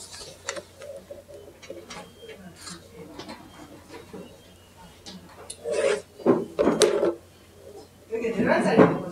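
A woman speaks calmly into a nearby microphone.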